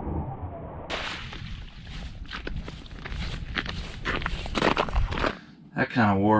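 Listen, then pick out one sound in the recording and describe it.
Footsteps crunch on ice.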